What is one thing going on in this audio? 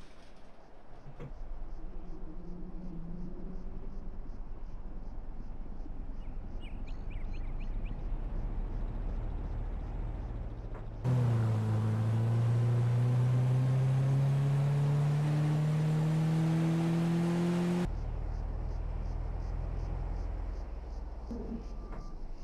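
A small car engine idles with a low steady hum.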